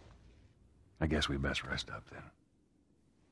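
A middle-aged man answers calmly in a low voice, close by.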